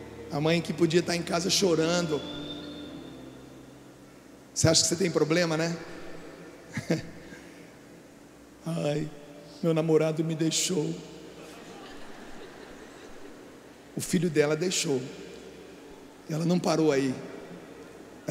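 A man speaks with animation through a microphone and loudspeakers, echoing in a large hall.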